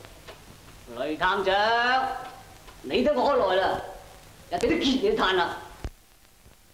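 A young man speaks tauntingly, close by.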